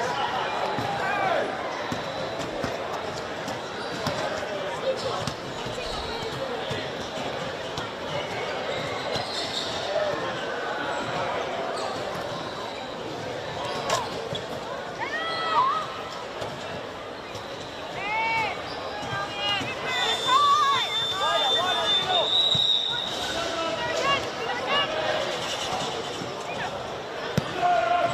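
Young women shout to each other across an open field, some distance away.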